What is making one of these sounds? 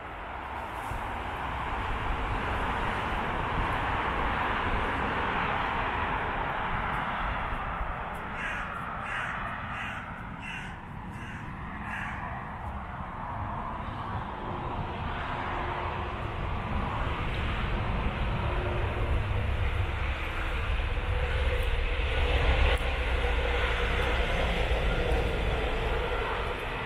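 Wind rustles through the leaves and pine branches outdoors.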